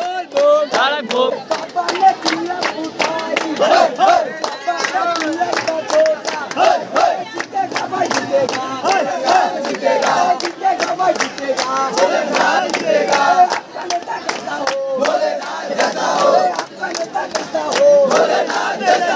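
Hands clap in a fast, steady rhythm.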